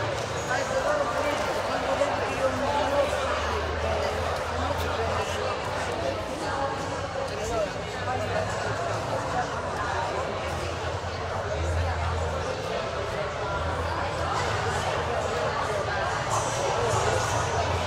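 A man strums an acoustic guitar through loudspeakers.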